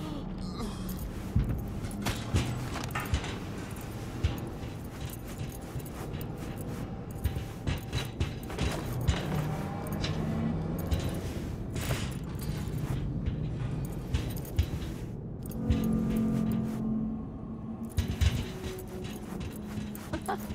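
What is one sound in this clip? Footsteps thud on metal stairs and walkways.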